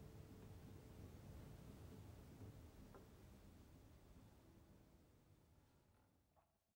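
An acoustic guitar plays softly and slowly fades away.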